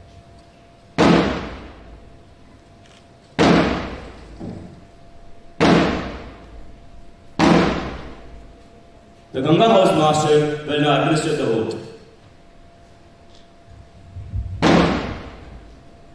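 A drum booms in single loud beats.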